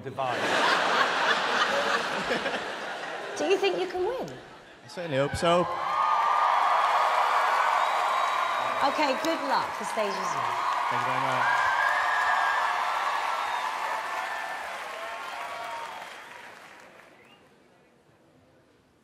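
A crowd in a large hall cheers and applauds loudly, then slowly fades.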